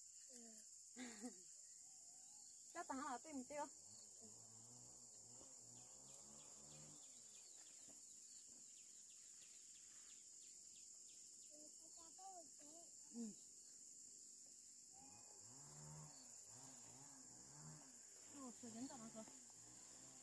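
A young girl talks and calls out nearby, outdoors.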